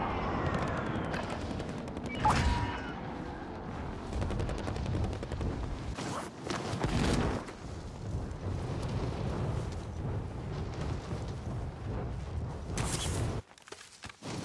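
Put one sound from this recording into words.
Wind rushes loudly past during a freefall.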